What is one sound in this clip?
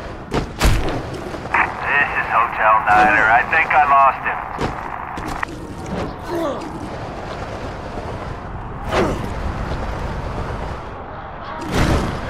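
A heavy body lands with a loud thud.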